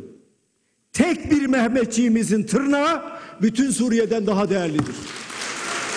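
An elderly man speaks forcefully through a microphone in a large hall.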